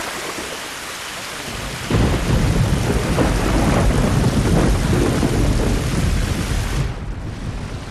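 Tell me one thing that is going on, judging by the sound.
Heavy rain hisses and water splashes.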